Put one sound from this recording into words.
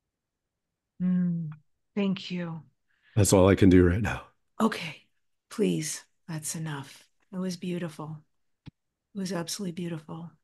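A woman speaks calmly and warmly over an online call.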